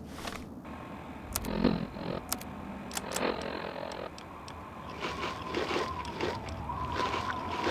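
Electronic menu clicks and beeps sound repeatedly.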